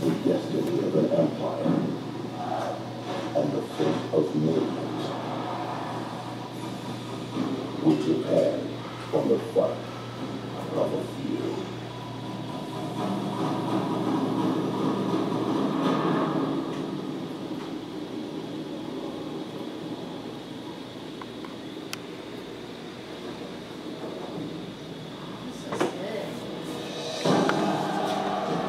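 Air bubbles stream and bubble steadily through water.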